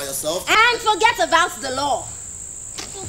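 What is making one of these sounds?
A young woman speaks loudly and expressively, close by.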